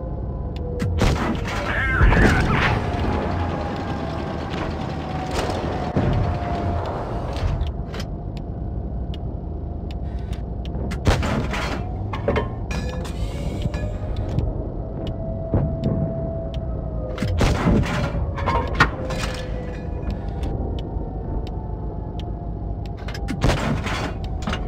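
A tank cannon fires with loud booms, now and then.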